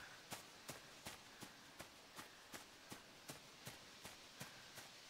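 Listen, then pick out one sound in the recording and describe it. Quick, even footsteps run over soft ground.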